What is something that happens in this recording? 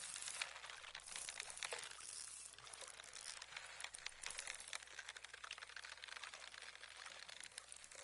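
A fishing reel ticks rapidly as line is wound in.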